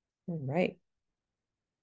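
A young woman says a few words over an online call.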